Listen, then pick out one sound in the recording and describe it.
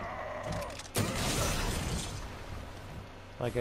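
A fiery blast bursts with a loud roar.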